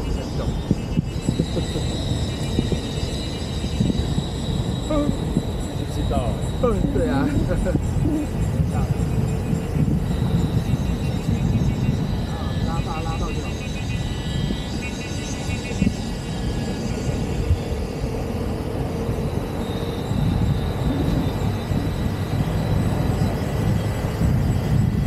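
Wind rushes and buffets loudly past an open car.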